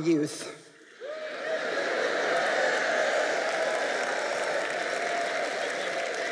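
A large audience laughs in an echoing hall.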